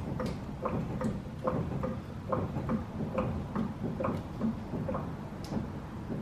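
A hydraulic jack handle is pumped with a steady, rhythmic clanking.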